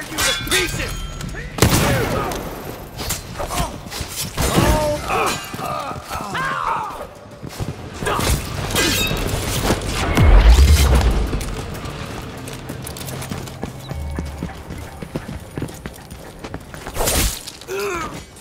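A sword slashes and thuds into bodies in quick strikes.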